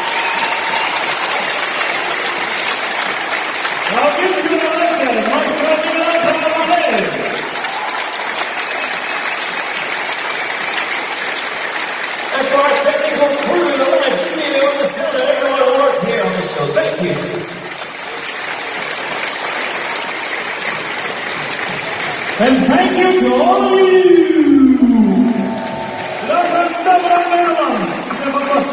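An orchestra plays through loudspeakers.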